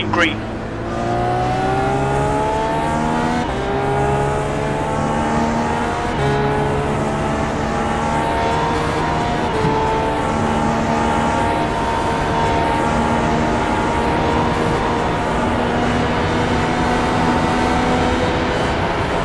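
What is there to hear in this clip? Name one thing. A single-seater race car engine accelerates hard, shifting up through the gears.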